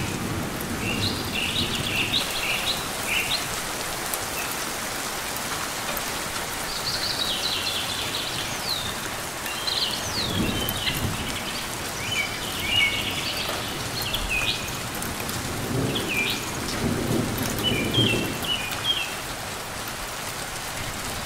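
Rain falls steadily with a soft, even hiss.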